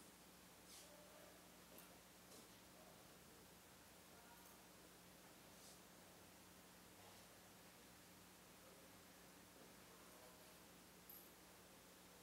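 Footsteps shuffle softly across the floor.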